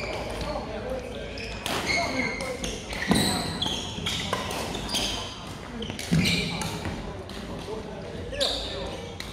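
Shoes squeak sharply on a hall floor.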